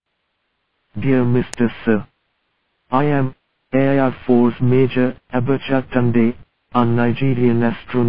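A man speaks in a flat, measured voice.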